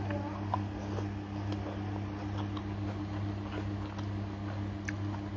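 A woman chews food noisily close by.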